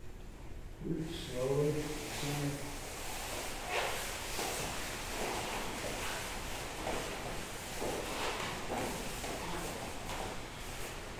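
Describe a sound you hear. Fabric rustles as people shift their bodies on floor mats.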